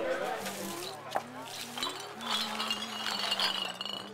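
A broom sweeps over litter on pavement.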